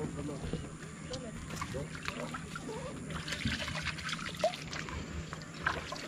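Water splashes as a man reaches into a lake.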